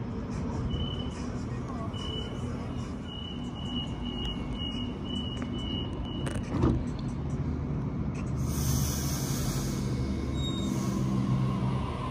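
A train's engine hums steadily nearby.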